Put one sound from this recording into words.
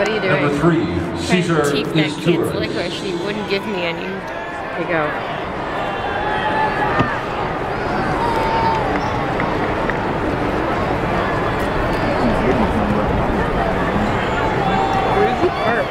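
A crowd chatters all around outdoors.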